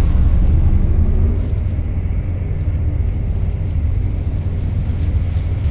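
Footsteps clank softly on a metal floor.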